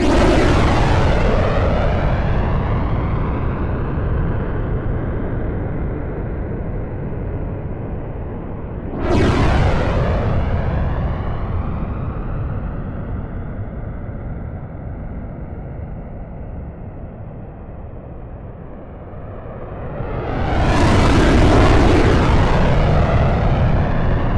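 A jet engine roars steadily, swelling loudly and fading as a fighter plane passes.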